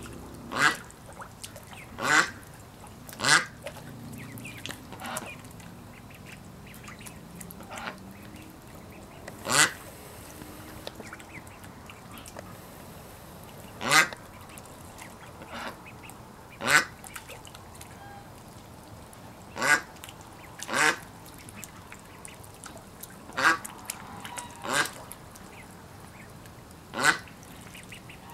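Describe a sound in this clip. A duck quacks loudly now and then.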